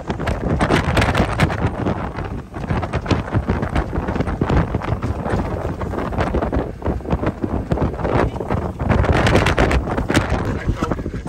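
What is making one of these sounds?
A motorboat engine roars steadily.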